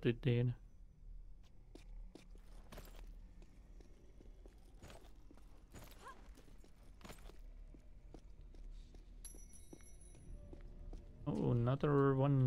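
Footsteps tap on stone floors.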